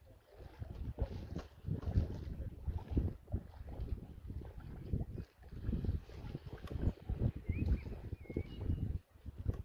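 Water swishes as a man wades slowly through the sea.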